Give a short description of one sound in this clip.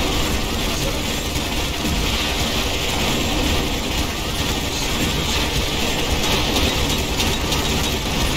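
Explosions boom and rumble continuously.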